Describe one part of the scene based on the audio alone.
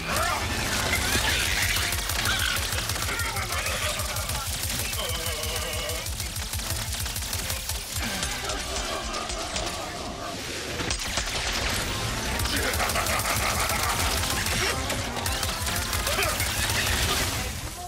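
Rapid gunfire and electric blasts crackle without pause.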